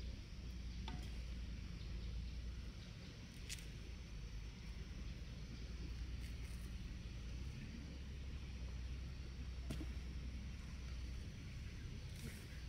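Dry leaves and stalks rustle and crackle as they are handled.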